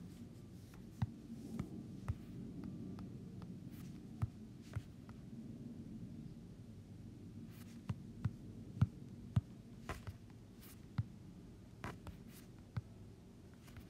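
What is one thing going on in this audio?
Blocks are placed with short soft knocks.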